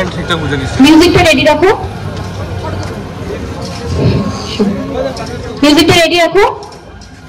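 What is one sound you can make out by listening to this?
A young woman speaks with animation into a microphone over a loudspeaker, outdoors.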